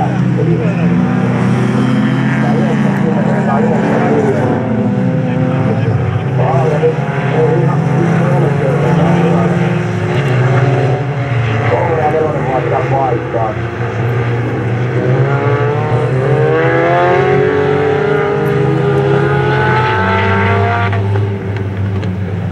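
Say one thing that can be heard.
Racing car engines roar and rev at a distance, outdoors.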